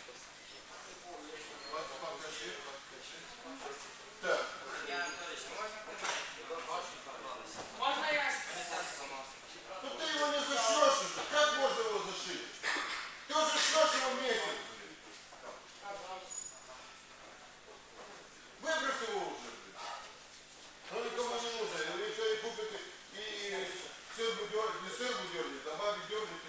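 A young man talks in a large echoing hall.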